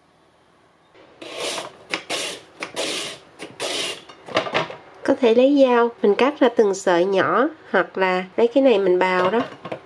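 A carrot is grated quickly on a slicer in rapid strokes.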